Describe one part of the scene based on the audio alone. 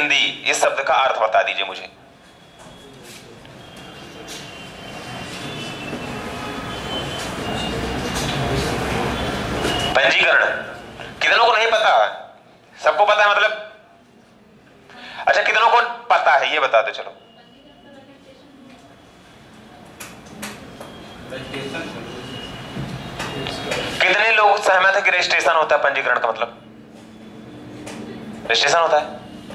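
A young man lectures calmly through a close microphone.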